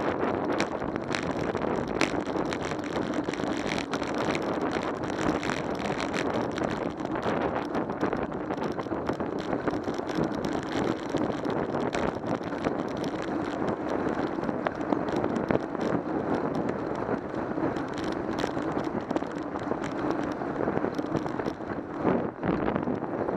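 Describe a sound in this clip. Wind rushes and buffets steadily while moving fast along a road outdoors.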